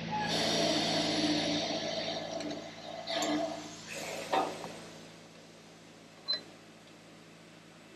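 Metal scrapes and clanks as a man handles a steel plate.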